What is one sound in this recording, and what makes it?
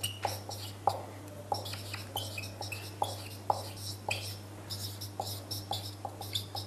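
A marker squeaks and taps on a whiteboard while writing.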